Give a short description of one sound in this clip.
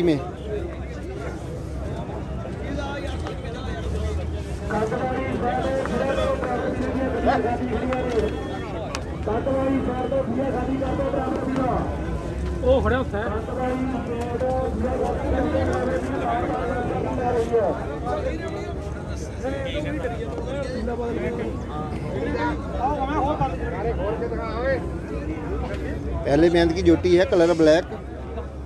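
Other men murmur in the background outdoors.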